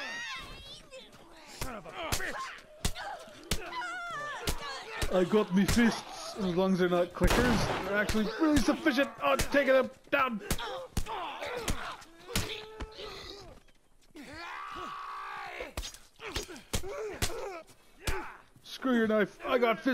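Fists land heavy thudding punches again and again.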